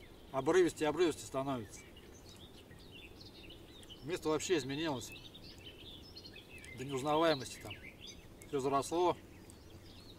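A man talks calmly nearby in short bursts with pauses.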